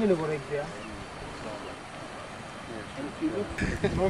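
Water ripples gently over a shallow riverbed.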